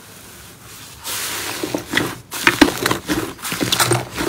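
Thick slime squelches and pops loudly as hands press into it.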